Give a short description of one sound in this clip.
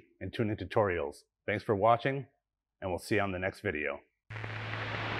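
A man speaks calmly and clearly into a close microphone.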